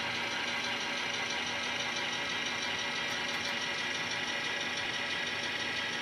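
A small electric motor in an N-scale model locomotive hums as it creeps slowly along the track.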